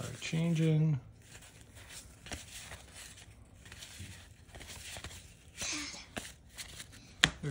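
Trading cards rustle and slide against each other as they are shuffled by hand.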